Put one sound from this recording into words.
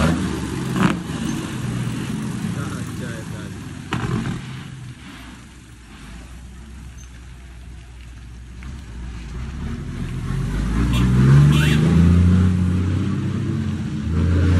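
A truck engine rumbles slowly nearby.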